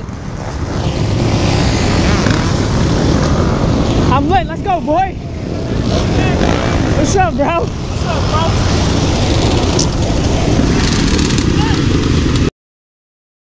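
Quad bike engines idle and rev loudly close by.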